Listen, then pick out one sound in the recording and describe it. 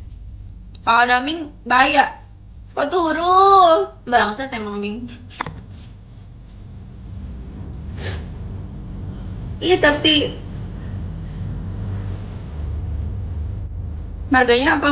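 A young woman talks with animation, close to a microphone.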